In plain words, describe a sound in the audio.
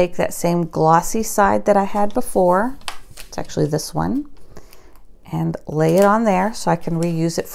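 A plastic sheet crinkles as it is peeled and handled.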